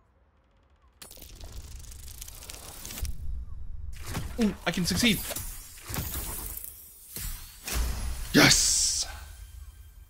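Dice rattle and roll.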